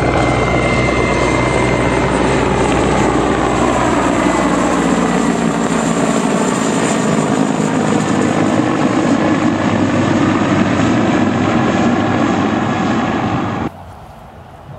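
A helicopter's rotor thuds loudly overhead as it flies past, its pitch slowly falling.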